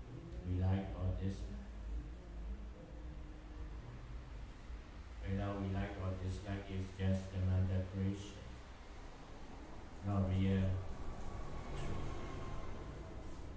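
A young man chants in a drawn-out, melodic voice through a microphone, echoing in a room.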